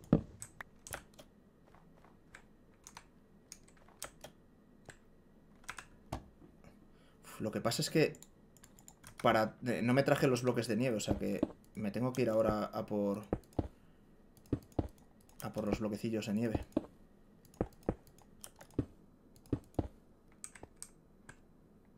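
Game blocks click as they are placed and broken.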